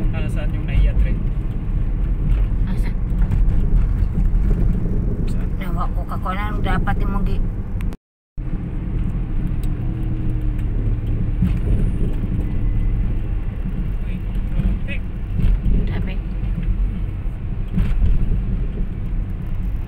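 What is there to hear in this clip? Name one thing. A car drives along, with road and engine rumble heard from inside the car.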